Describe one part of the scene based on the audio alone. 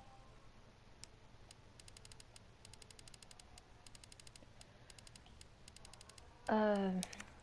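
Soft menu clicks tick in quick bursts.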